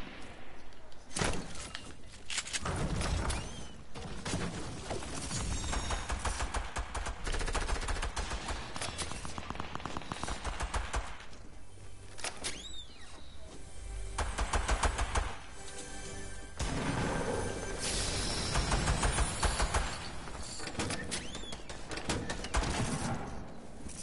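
Footsteps run quickly across hard floors.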